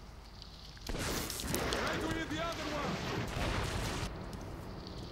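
A man shouts nearby.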